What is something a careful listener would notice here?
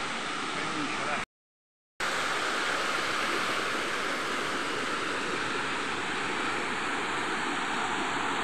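A stream rushes and splashes over rocks in a steady flow.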